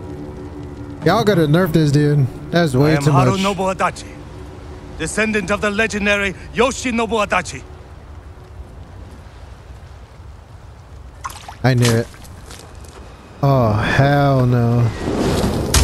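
A man speaks slowly and gravely in a deep voice.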